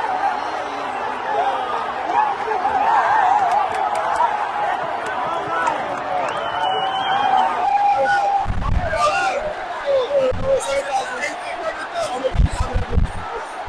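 A large stadium crowd sings and chants loudly all around.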